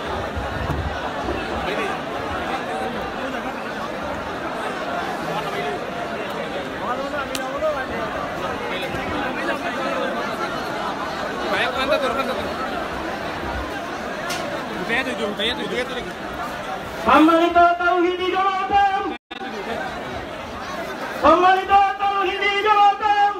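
A young man speaks into a microphone, heard over loudspeakers.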